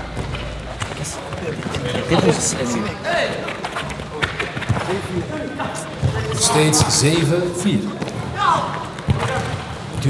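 Shoes squeak on a hard court.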